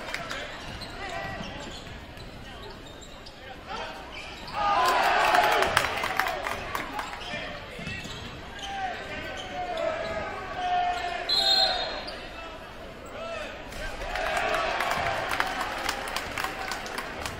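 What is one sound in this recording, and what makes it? Sneakers squeak on the hardwood floor.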